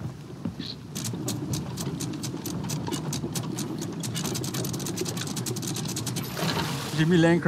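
A ship's capstan clicks rapidly as it turns.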